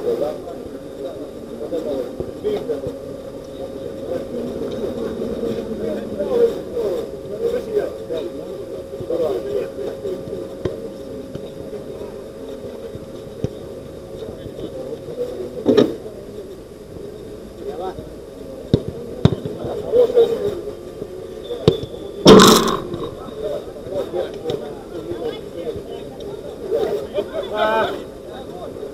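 Men shout and call out to each other from a distance.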